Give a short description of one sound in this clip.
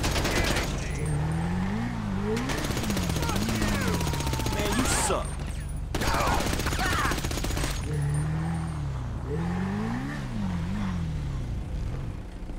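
A motorcycle engine revs up and down, rising and falling in pitch.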